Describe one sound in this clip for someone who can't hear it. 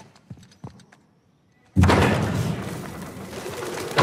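Heavy doors creak and swing open.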